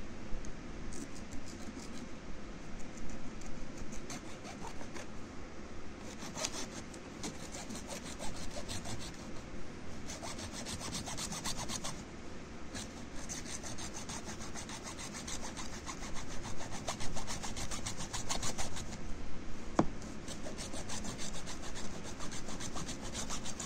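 A hacksaw rasps back and forth through hard plastic in quick strokes.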